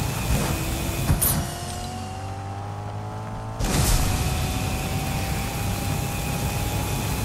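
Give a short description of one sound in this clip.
A car engine hums steadily and shifts in pitch.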